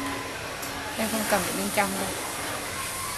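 A young woman makes short wavering sounds with her voice close by.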